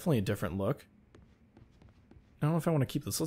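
Footsteps tap on a wooden floor.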